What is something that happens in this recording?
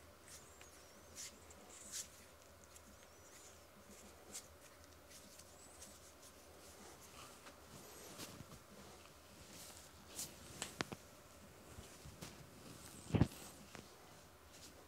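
Hands rub and clap together close by.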